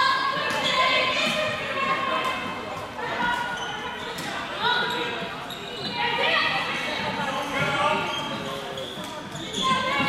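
Plastic sticks clack against a ball and the floor.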